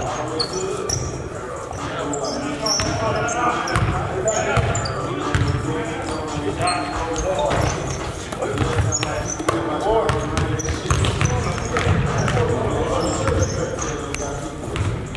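Young men shout and call out to each other during play.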